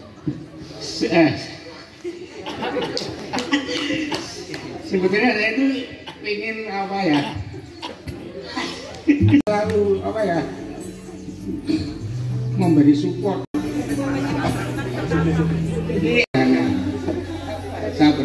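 A choir of young women sings through loudspeakers.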